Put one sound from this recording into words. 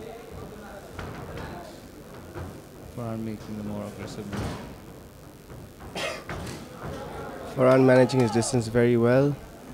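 Gloved punches thud against a fighter's body.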